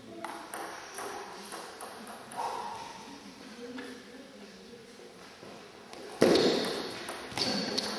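A table tennis ball clicks back and forth across a table.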